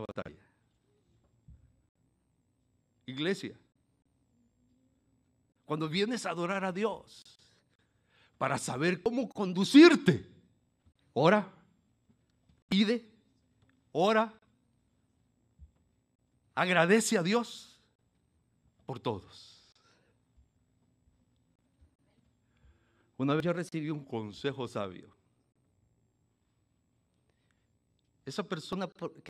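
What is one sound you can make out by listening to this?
An older man preaches with animation into a microphone, in short bursts with long pauses.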